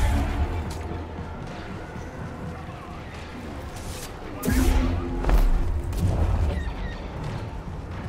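Blaster bolts zip past.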